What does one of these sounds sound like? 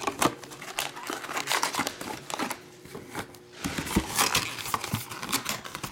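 Card packs clack softly as they are stacked.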